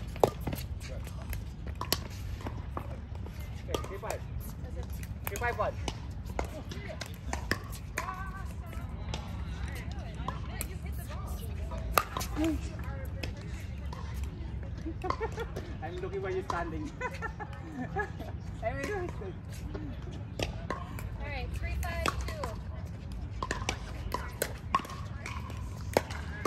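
Paddles hit a plastic ball with sharp pops.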